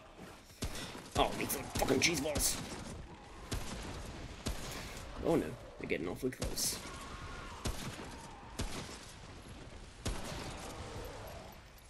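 Gunshots fire and echo in a hard, enclosed space.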